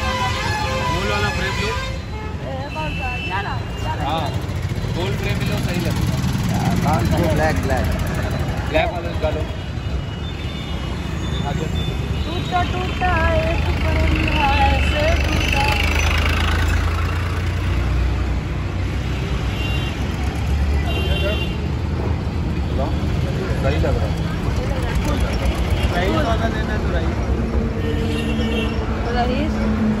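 A boy talks with animation close by.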